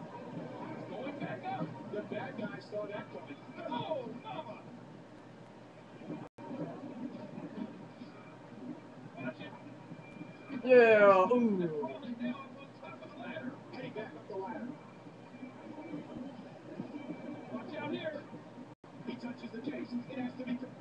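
Crowd noise from a video game plays through a small television speaker.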